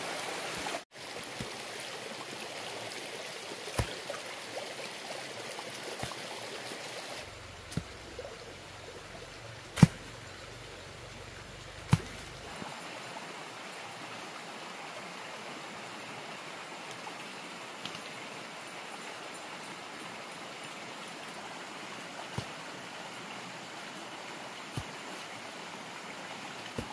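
A stream rushes steadily nearby.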